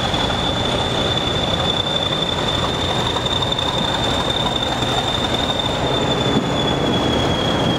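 A high steady whine sounds from a diesel locomotive.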